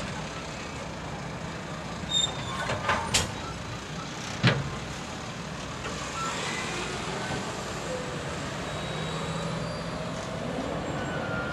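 Passenger cars roll slowly past on the rails, with steady rumbling.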